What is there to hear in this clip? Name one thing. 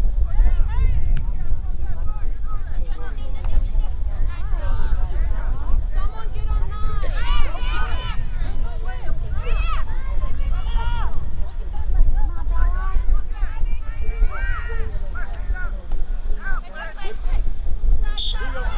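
Young women shout and call out to each other across an open field.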